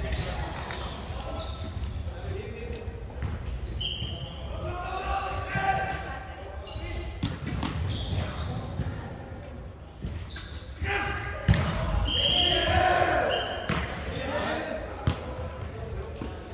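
A volleyball thumps off players' arms.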